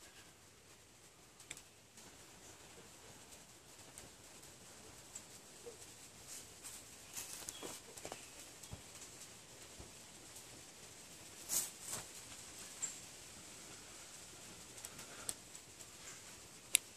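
Dry pine needles rustle and crackle in a hand.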